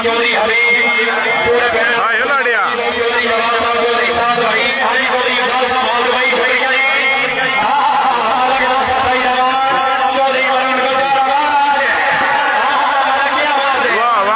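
A large outdoor crowd cheers and shouts continuously.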